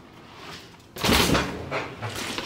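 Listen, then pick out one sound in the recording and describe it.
A bicycle lands hard with a thud.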